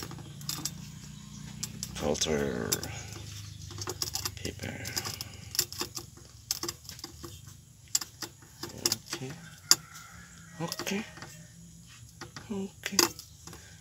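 Glassware clinks lightly.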